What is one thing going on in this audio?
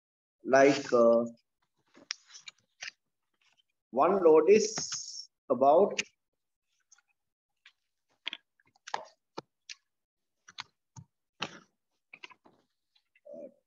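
Sheets of paper rustle as they are shifted about.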